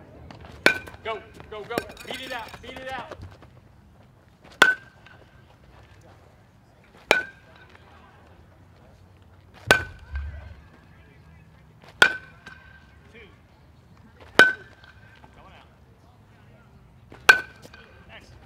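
A metal bat sharply pings as it hits a ball, again and again.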